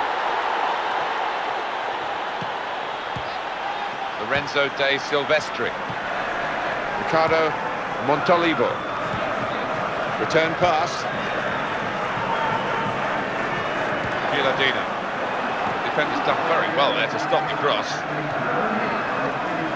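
A stadium crowd cheers and murmurs steadily.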